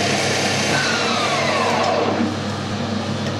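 A lathe motor winds down with a falling whine.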